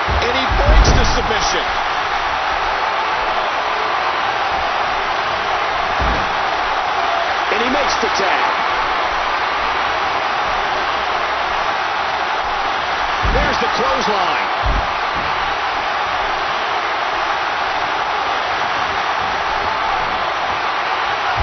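A large crowd roars steadily in a big arena.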